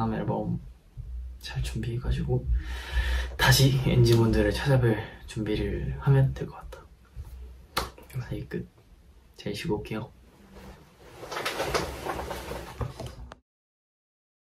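A young man talks casually and warmly, close to the microphone.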